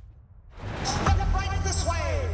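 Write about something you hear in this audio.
A young woman exclaims in surprise close to a microphone.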